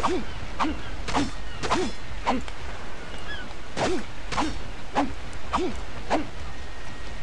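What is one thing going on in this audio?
A sickle swishes through plants in quick repeated strokes.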